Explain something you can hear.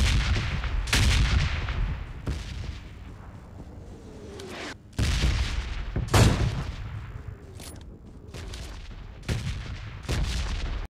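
Sniper rifle shots crack loudly and echo away.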